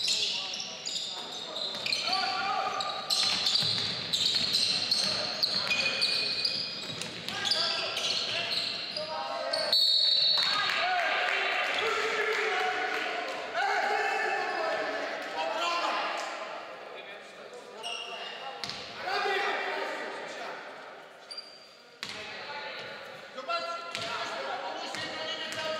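Young players shout to each other across an echoing hall.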